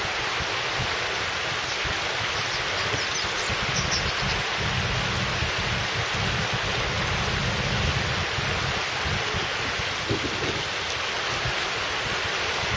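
Water rushes steadily over shallow rocks in a river.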